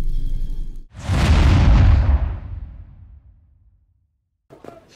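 A deep whoosh swells and fades.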